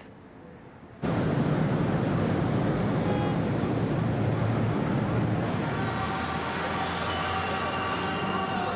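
City traffic hums in the distance.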